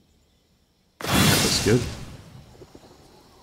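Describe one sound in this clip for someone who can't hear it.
A sword swooshes in a sudden burst of magic.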